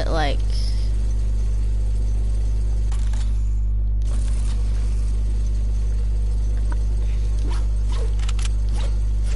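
A zipline whirs steadily as a rider glides along a cable.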